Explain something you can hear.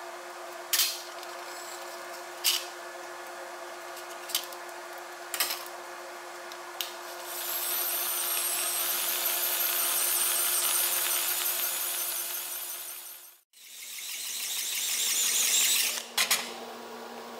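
Metal parts clink as they are handled.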